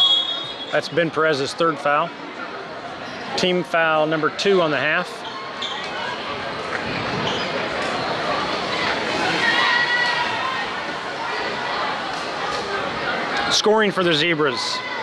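A crowd murmurs steadily in a large echoing gym.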